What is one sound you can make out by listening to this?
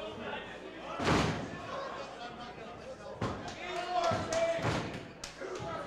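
Bodies thump heavily onto a wrestling ring mat.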